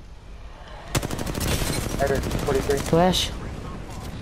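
An automatic gun fires rapid bursts of shots.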